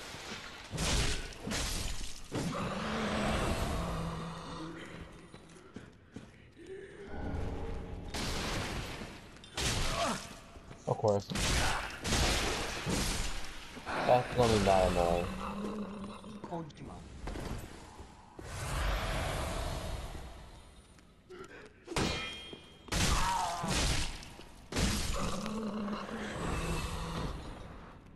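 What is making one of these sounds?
Heavy blades swing and strike with sharp, hard hits.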